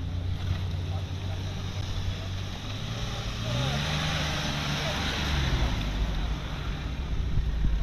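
An off-road vehicle's engine revs loudly and labours.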